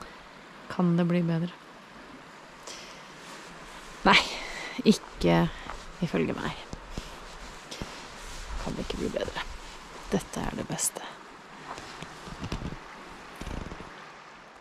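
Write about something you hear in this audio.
A woman talks close to the microphone in a lively, cheerful way.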